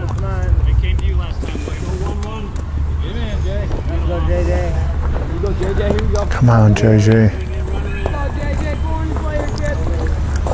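Men and boys talk and call out nearby, outdoors.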